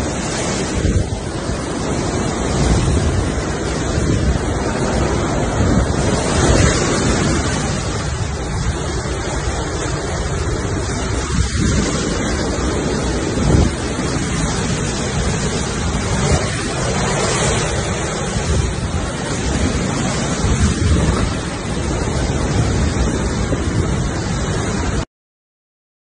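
Strong wind roars and gusts outdoors.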